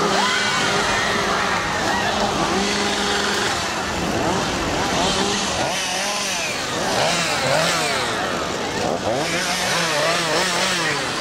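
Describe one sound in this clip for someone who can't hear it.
A crowd chatters and screams nearby, outdoors.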